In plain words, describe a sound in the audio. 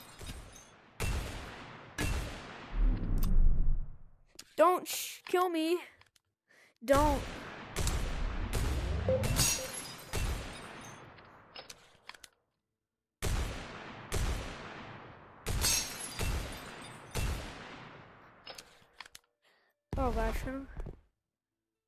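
Gunshots fire one at a time, each ringing out and fading.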